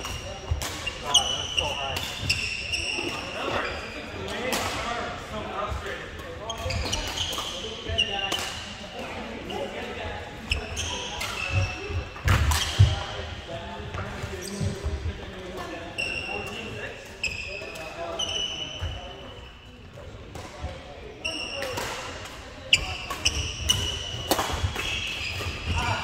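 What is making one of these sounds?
Shoes squeak sharply on a wooden floor.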